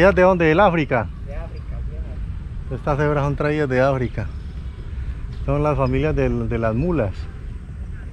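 A man talks with animation close to a microphone, outdoors.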